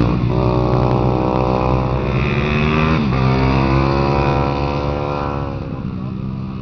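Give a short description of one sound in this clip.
A motorcycle roars past close by and fades away.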